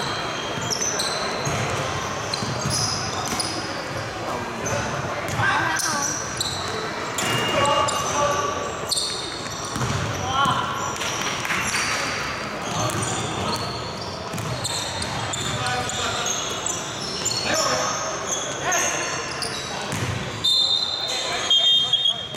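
Basketball shoes squeak sharply on a wooden floor in a large echoing hall.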